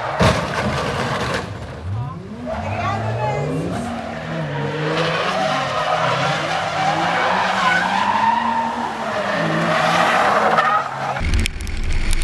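Tyres squeal on the track surface.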